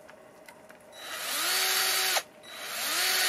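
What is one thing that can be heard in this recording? A cordless drill whirs up to speed, stops briefly and starts again.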